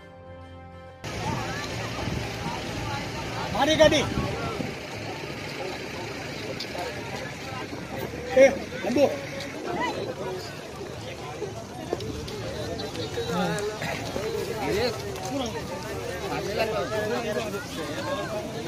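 A crowd of men talks and calls out outdoors.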